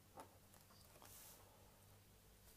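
A plastic ruler slides across paper.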